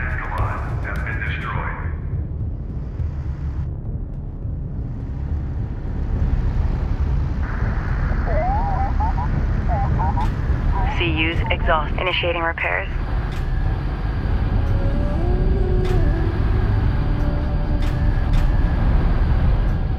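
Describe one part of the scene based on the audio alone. A spacecraft's engines rumble low and steadily.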